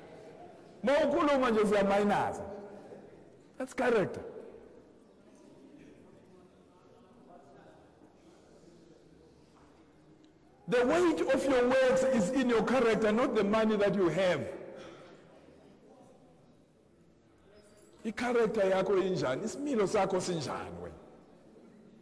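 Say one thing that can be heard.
A middle-aged man speaks with animation, in bursts with pauses.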